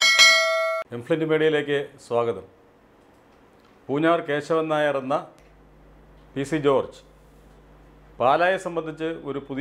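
An older man speaks calmly into a close microphone, with pauses.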